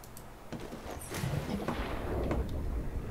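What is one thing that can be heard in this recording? A hatch opens with a whoosh.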